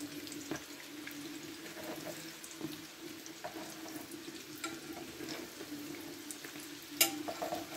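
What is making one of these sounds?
A metal fork clinks against a frying pan.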